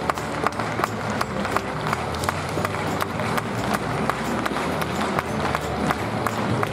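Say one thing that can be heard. A horse's hooves trot on soft sand.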